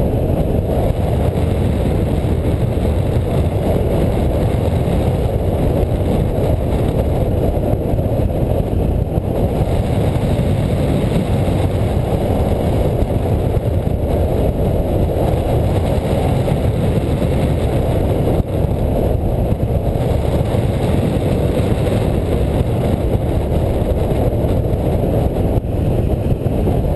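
Strong wind rushes and roars loudly past the microphone.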